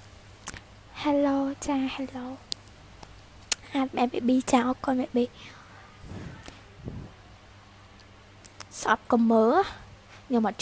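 A young woman speaks close to a microphone, calmly and softly.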